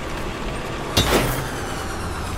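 A mechanical launcher fires a cable with a sharp bang.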